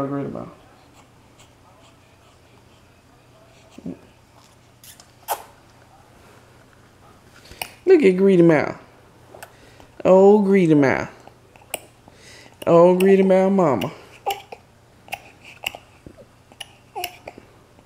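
A baby sucks on a bottle.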